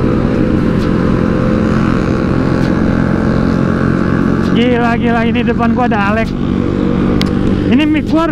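A motor scooter engine hums steadily while riding at speed.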